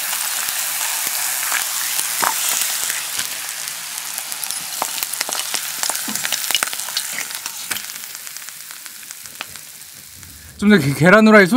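Hot oil sizzles and crackles in a frying pan.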